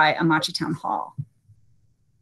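A woman speaks briefly and calmly over an online call.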